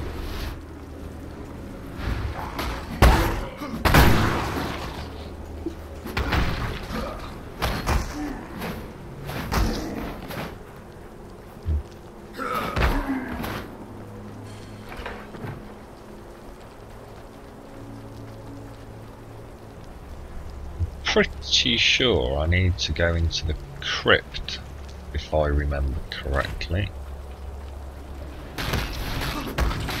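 Fiery magic blasts burst and crackle in quick succession.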